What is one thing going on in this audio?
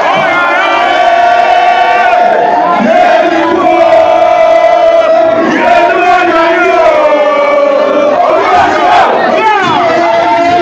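Young men sing loudly together in a chant.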